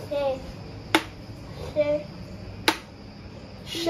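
A pointer taps on a board.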